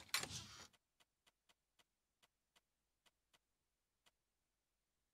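Menu clicks tick softly.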